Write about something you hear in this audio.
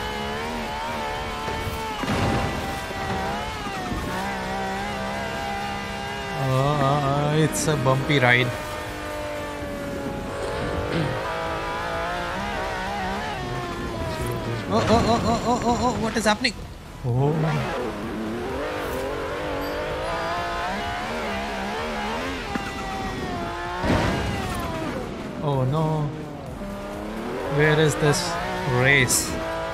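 A sports car engine roars and revs steadily.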